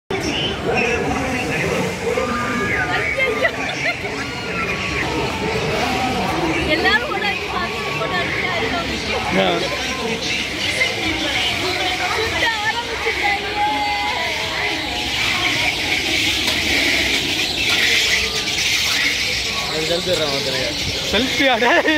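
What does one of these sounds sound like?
A crowd murmurs and chatters below, outdoors.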